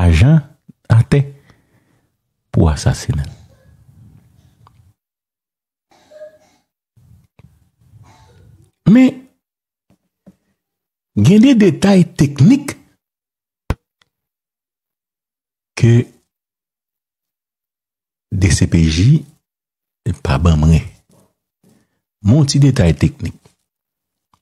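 A man speaks into a microphone close by in short, measured phrases with pauses.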